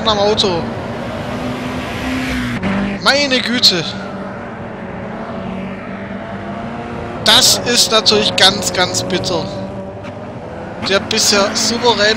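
A racing car engine drones loudly at high speed.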